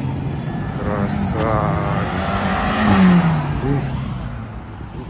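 A car drives past close by, rising and then fading.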